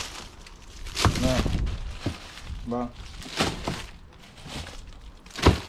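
Frozen fish thud softly into a cardboard box.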